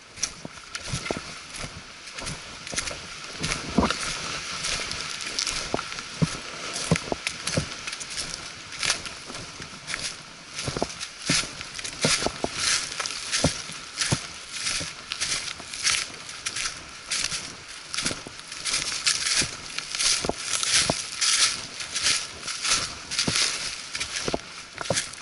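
A walking pole taps the ground in a regular rhythm.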